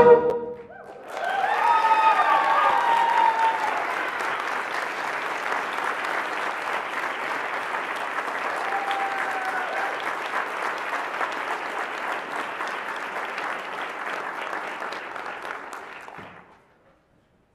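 An audience applauds steadily and then fades out.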